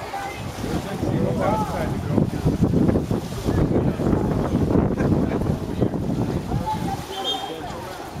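Water splashes as swimmers thrash in a pool.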